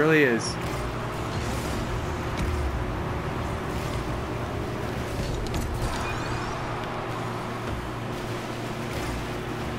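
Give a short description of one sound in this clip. A car engine hums and roars steadily.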